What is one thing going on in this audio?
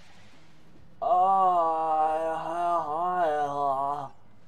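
A man exclaims loudly, close to a microphone, with a drawn-out, wavering voice.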